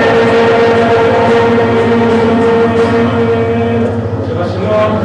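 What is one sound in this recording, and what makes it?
A man sings into a microphone through loudspeakers.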